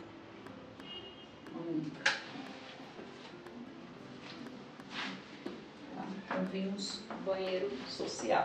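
A woman speaks with animation close by.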